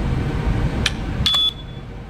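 A keypad gives a short electronic beep.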